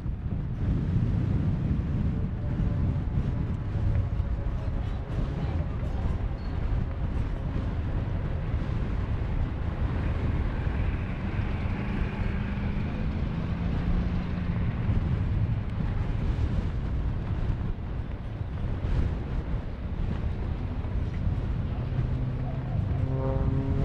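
A small propeller plane's engine drones and changes pitch as the plane flies overhead.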